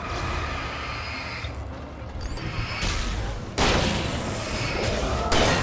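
A gun fires loud, sharp shots.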